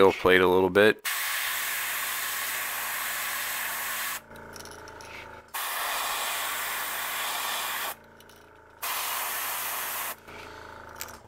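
An airbrush hisses in short bursts of spray.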